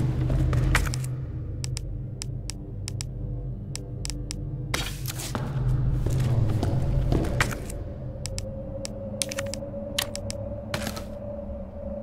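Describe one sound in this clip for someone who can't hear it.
Short menu clicks tick as items are selected.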